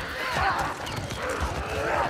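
A man shouts sharply to urge on a horse.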